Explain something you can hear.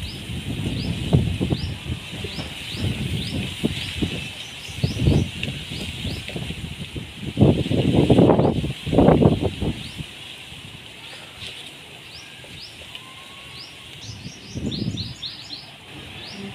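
Strong wind gusts outdoors, rumbling against the microphone.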